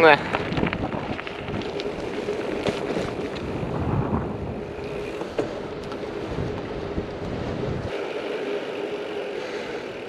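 Bicycle tyres roll on a rough road.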